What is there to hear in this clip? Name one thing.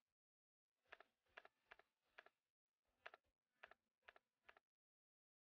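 Soft interface clicks tick several times in a row.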